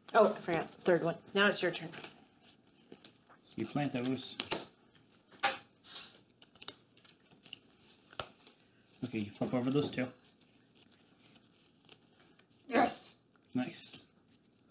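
Playing cards slide and tap on a wooden table.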